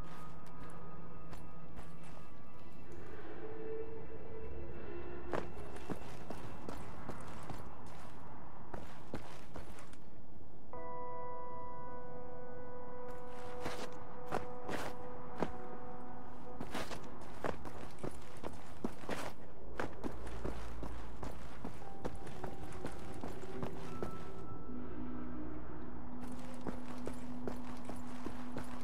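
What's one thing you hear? Footsteps clank on a metal walkway.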